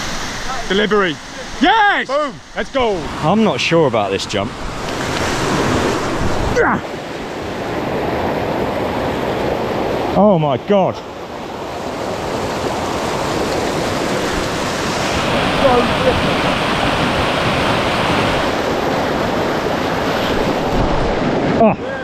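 A stream rushes loudly over rocks outdoors.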